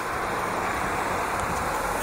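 A car drives past on the street.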